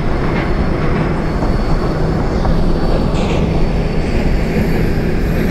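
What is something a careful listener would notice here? A train rumbles steadily along the rails through a tunnel.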